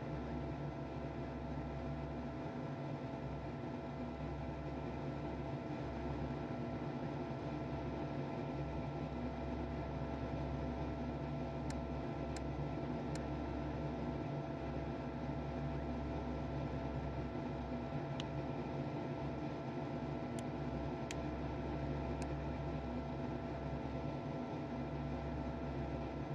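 A jet engine hums and whines steadily at idle.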